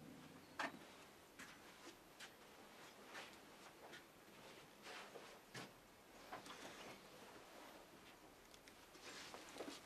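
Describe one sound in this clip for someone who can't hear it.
Footsteps tread slowly across a room.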